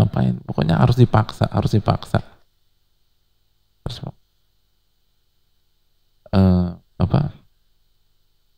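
A man speaks calmly into a headset microphone, with pauses.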